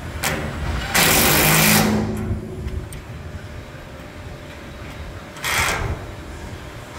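An impact driver whirs in short bursts, rattling as it drives a bolt.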